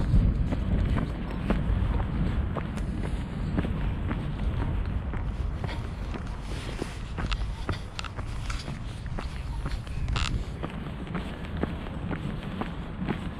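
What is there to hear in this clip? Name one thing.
Footsteps tread steadily along an outdoor path.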